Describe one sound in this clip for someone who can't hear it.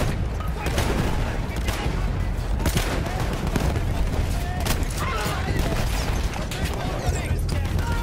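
Gunshots crack and boom nearby.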